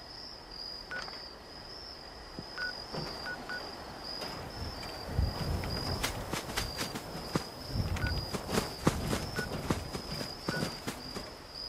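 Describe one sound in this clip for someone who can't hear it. Soft menu clicks blip now and then.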